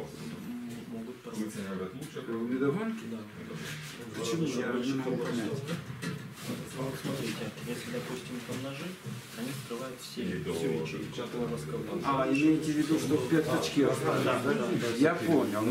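A younger man talks with animation close by.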